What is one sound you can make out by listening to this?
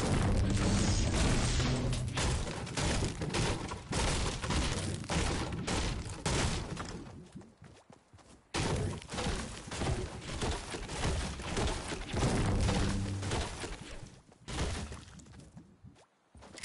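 A pickaxe chops repeatedly into wood with sharp knocks.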